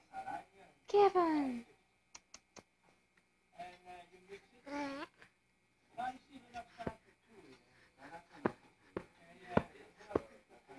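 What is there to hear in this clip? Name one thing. A baby babbles and coos up close.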